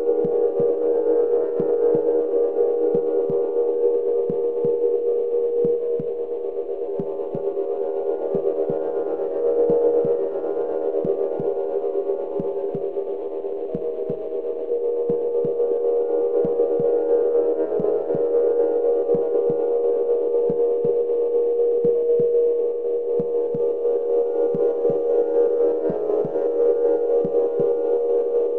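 Soft electronic thumps beat in a loose, regular rhythm.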